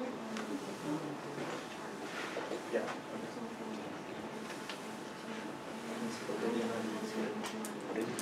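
A chalkboard eraser rubs across a chalkboard.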